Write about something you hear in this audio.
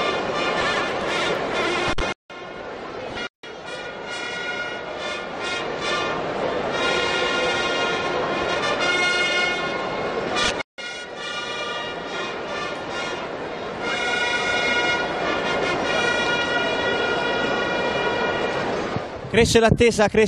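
Several long trumpets play a loud, sustained fanfare outdoors.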